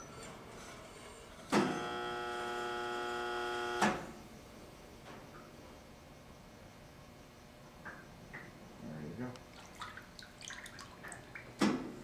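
Water sloshes and drips in a tank.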